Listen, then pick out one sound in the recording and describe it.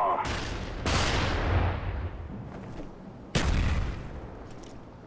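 Loud explosions boom and rumble nearby.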